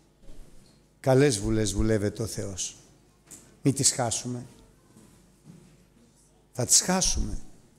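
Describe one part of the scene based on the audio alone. A middle-aged man speaks with animation into a microphone in an echoing hall.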